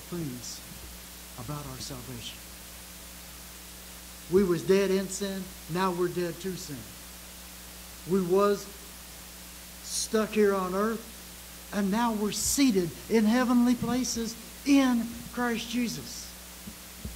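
An elderly man speaks with animation through a microphone, pausing between phrases.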